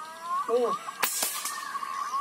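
An air rifle fires a single sharp shot.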